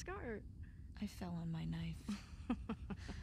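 A second young woman answers calmly, close by.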